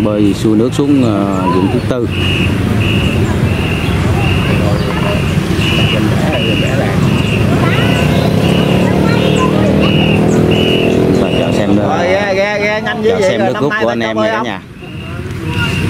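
A crew of rowers shouts together in a steady rhythm.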